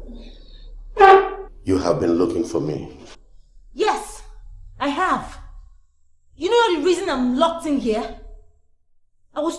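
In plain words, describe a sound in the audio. A young woman speaks angrily and sharply, close by.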